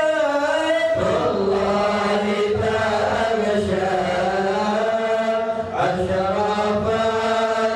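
A group of men chant along in unison.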